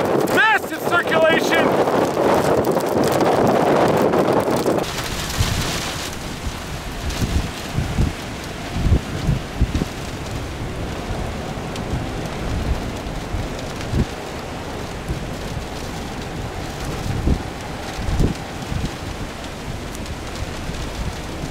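Strong wind roars and gusts outdoors, buffeting in heavy thumps.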